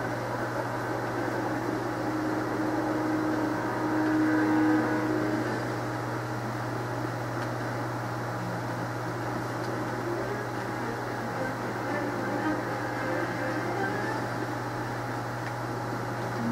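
Video game music and effects play from a television speaker.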